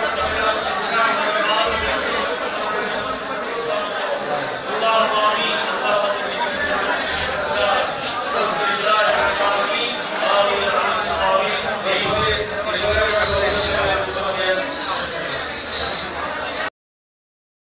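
A man prays aloud into a microphone, chanting over a loudspeaker in an echoing hall.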